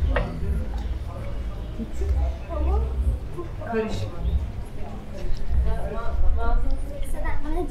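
A woman talks nearby in a calm voice.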